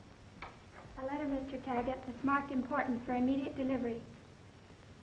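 A woman speaks clearly and politely.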